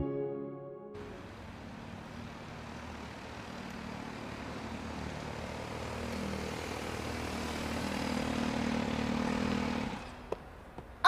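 A sport motorcycle pulls in and slows down.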